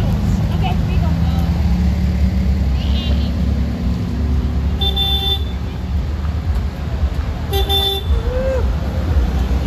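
Car engines rumble as old cars drive slowly past, close by.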